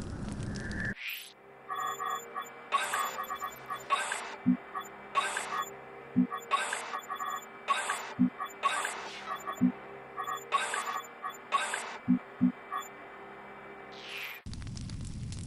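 Short electronic chimes and clicks sound in quick succession.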